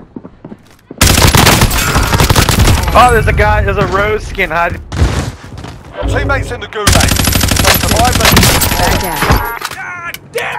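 Rapid gunfire bursts ring out loudly.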